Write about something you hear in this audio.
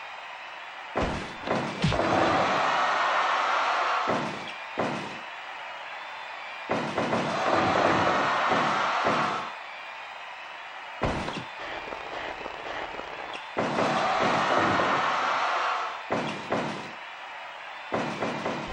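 Heavy thuds ring out as bodies slam onto a mat.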